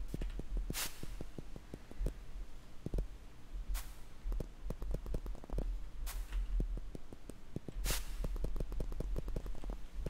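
Quick light footsteps tap rapidly in a video game.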